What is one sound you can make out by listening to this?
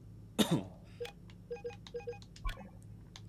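Short soft beeps chime in a quick pattern.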